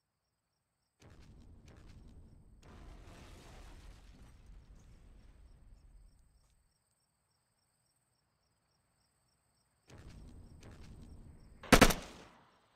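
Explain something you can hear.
Footsteps run through grass.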